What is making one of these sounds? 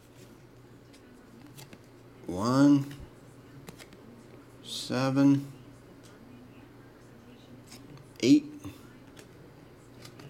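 Trading cards rustle and slide softly against each other in someone's hands.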